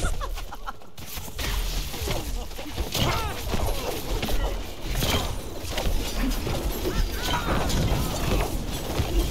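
Game effects whoosh and crackle during a fight.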